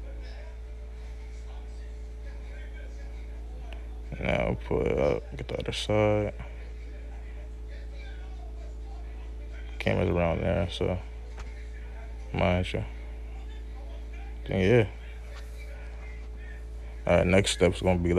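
A plastic pry tool scrapes and clicks against a phone's frame.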